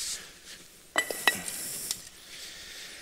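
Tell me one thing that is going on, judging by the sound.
Stone blocks knock against each other.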